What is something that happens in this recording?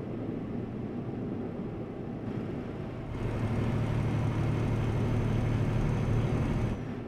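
A truck engine drones steadily as the truck drives along a road.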